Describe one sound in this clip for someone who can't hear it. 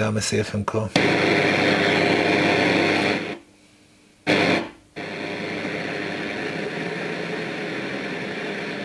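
A radio hisses loudly with static from its loudspeakers.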